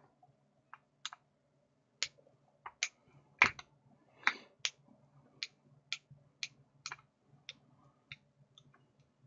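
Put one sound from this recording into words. A screwdriver clicks in quick, regular ticks as it turns a screw.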